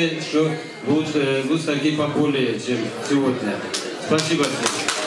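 An elderly man speaks through a microphone in an echoing room.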